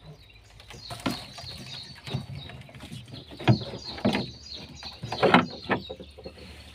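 A wooden board knocks against a hollow boat floor.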